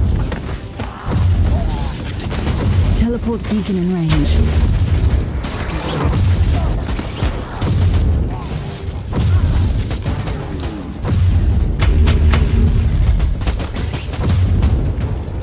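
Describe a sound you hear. Explosions and fiery blasts boom and crackle in a game battle.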